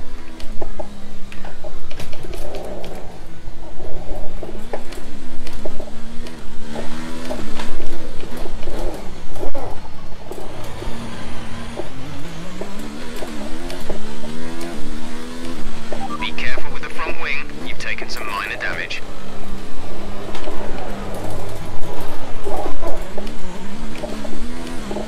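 A racing car engine screams, rising and falling in pitch as it speeds up and shifts gears.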